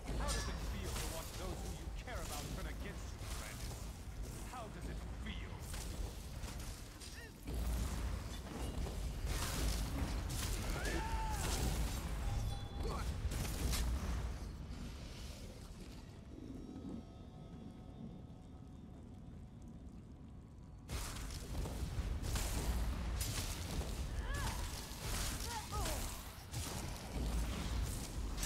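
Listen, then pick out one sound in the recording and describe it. Magic spells crackle and blast in bursts.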